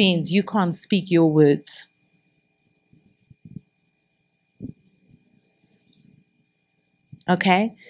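A middle-aged woman speaks with animation into a microphone, heard through a loudspeaker.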